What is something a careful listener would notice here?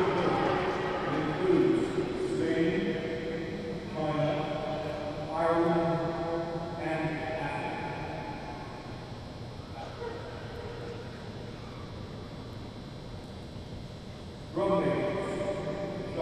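A marching band plays loud brass chords that echo through a large arena.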